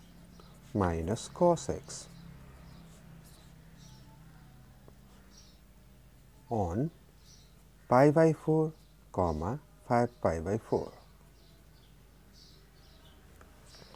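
A marker squeaks and scratches on paper.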